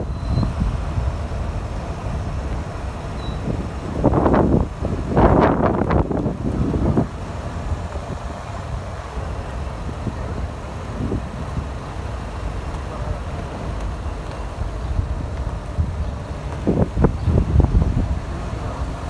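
A car drives slowly along a street with a low, steady rumble.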